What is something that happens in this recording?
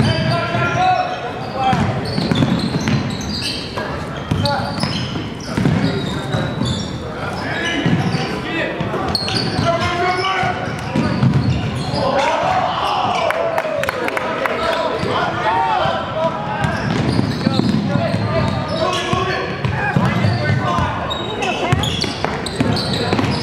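Spectators cheer and shout in a large echoing gym.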